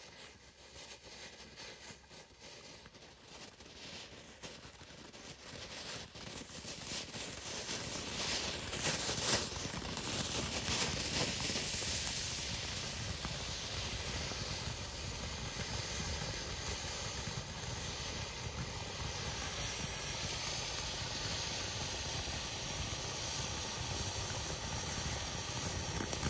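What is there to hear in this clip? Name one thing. A firework fountain hisses and sputters, growing louder.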